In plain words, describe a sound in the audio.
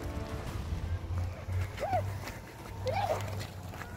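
A child runs over loose stones.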